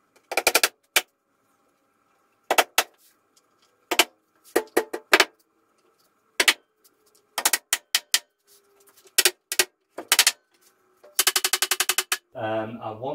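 A small hammer taps sharply on wood in quick bursts.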